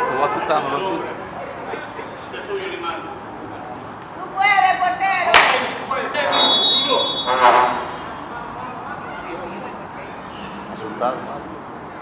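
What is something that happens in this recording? Young men shout across an outdoor football pitch.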